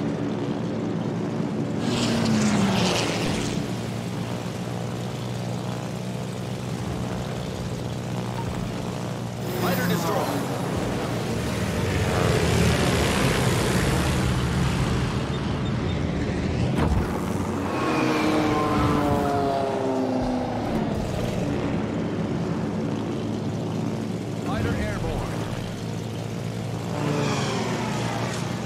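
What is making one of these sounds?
Piston-engine warplanes drone in flight.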